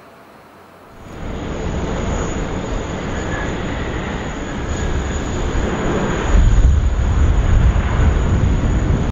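A jet airliner roars as it speeds down a runway, growing louder.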